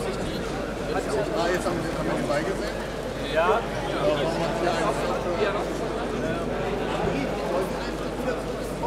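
A crowd of spectators chatters in an echoing indoor hall.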